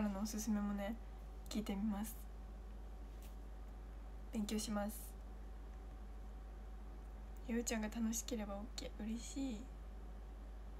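A young woman speaks softly and cheerfully, close to a microphone.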